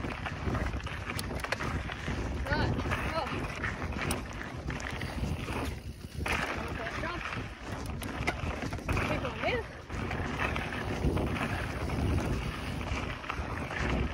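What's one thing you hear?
Bicycle tyres rumble fast over a dirt trail.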